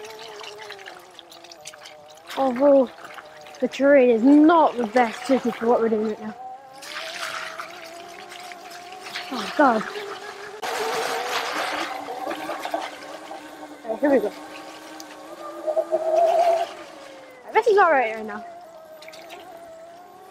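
An electric motorbike motor whines steadily, its pitch rising and falling as it speeds up and slows down.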